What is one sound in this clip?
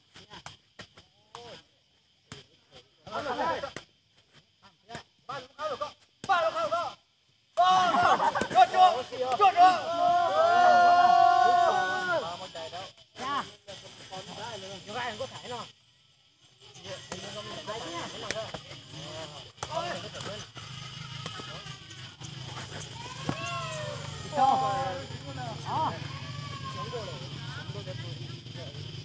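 Young men shout and call out outdoors during a game.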